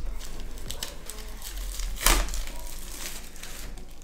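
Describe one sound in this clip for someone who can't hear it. Plastic wrap crinkles and tears as hands pull it off a box.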